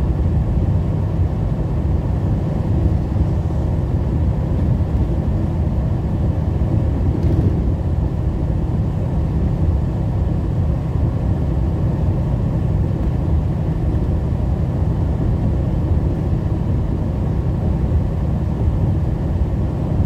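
Tyres hum on a wet road.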